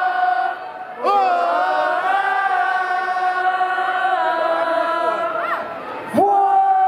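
A young man sings long, held notes loudly through a microphone.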